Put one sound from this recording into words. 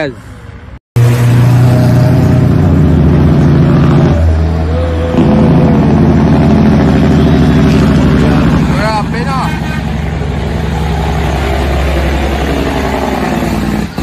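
A diesel truck engine roars loudly nearby.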